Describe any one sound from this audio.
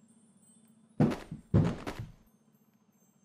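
Plastic parts tumble out and clatter onto the ground.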